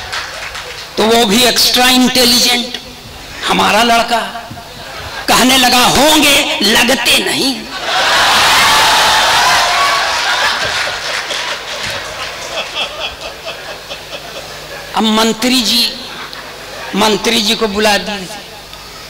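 An elderly man recites expressively into a microphone, heard through loudspeakers.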